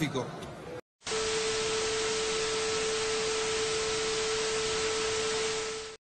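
Loud static hisses.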